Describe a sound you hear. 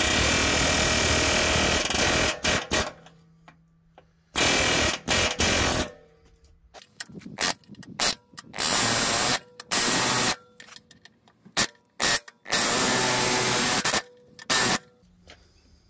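An air chisel hammers loudly against metal in short bursts.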